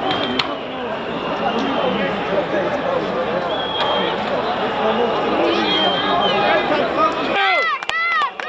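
A large crowd clamours and shouts outdoors.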